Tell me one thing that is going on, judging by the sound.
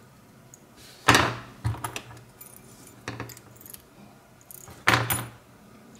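Small metal lock parts click and clink as they are handled.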